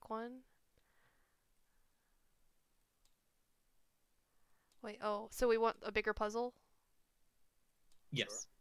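A young woman speaks casually and close through a microphone, in short bursts.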